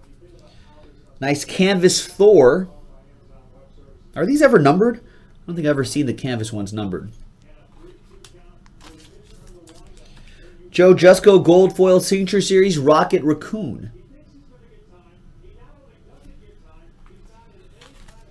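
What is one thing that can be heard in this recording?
Trading cards rustle and click as they are handled.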